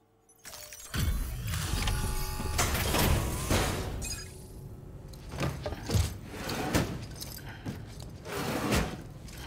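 Cargo crates thud and clatter as they are unloaded.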